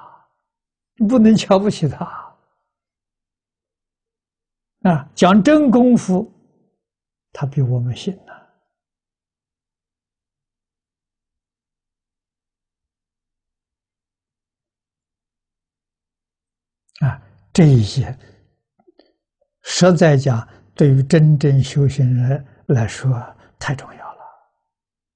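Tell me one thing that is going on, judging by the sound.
An elderly man speaks calmly into a close microphone, pausing often.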